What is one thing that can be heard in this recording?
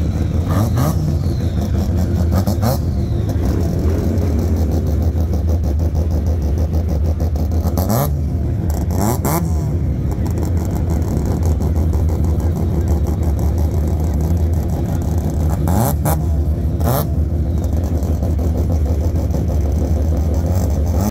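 A car engine idles with a loud, deep rumble close by.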